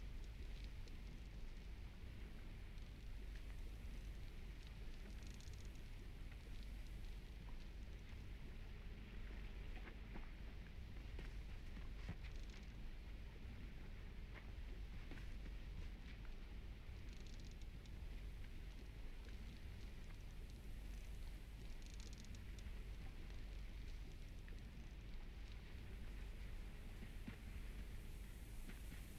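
A low, steady wind rumbles through a forest.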